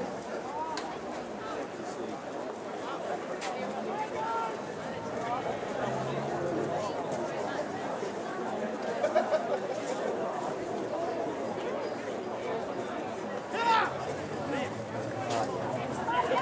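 Young men shout and call out to each other outdoors on a wide open field.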